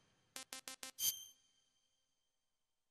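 A bright electronic chime rings and fades.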